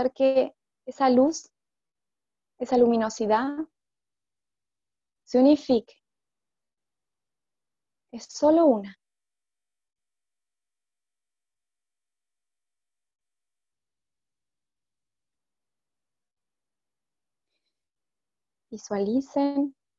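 A woman speaks calmly in short phrases, close to a headset microphone.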